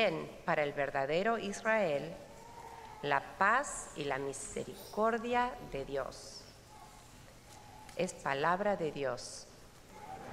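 A woman sings through a microphone in a large echoing hall.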